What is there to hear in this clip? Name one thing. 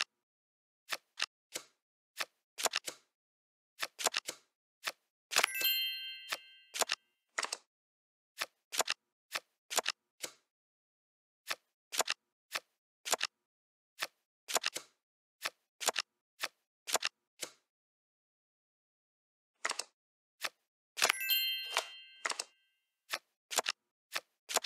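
Digital card-game sound effects click as cards are dealt and placed.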